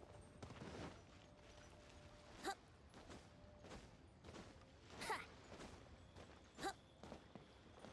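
Light footsteps run quickly over stone.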